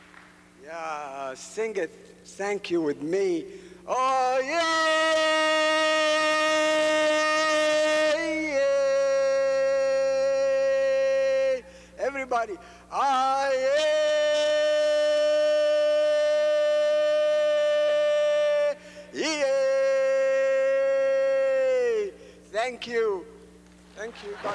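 An elderly man sings long, held notes loudly through a microphone in a large echoing hall.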